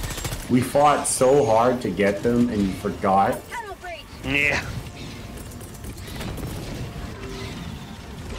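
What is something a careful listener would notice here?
A flamethrower roars in a video game.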